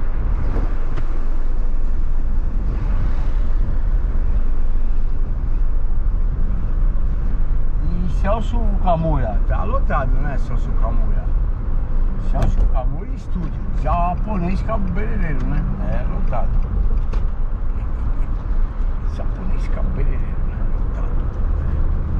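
A car engine hums steadily with road noise inside the cabin.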